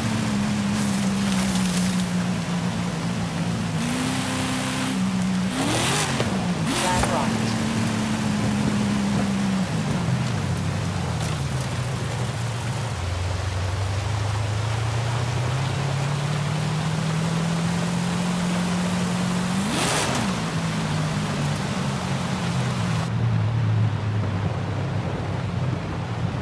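A car engine drones and revs up and down.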